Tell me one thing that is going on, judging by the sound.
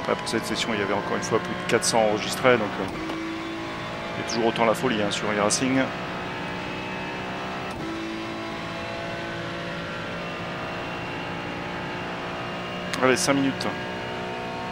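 A racing car engine blips and revs sharply through gear changes.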